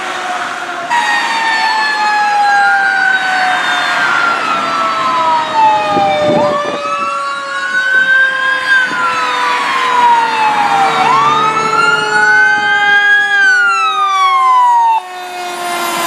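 A fire truck's siren wails, rising and falling repeatedly.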